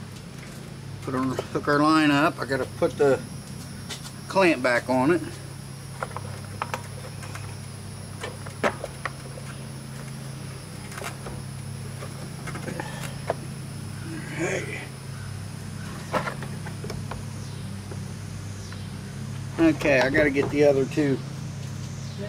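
An older man talks calmly close by.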